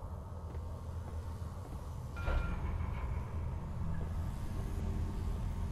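A low electronic hum drones steadily.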